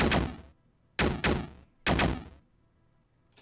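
Electronic drum sounds hit hard and boom from a drum machine, then stop.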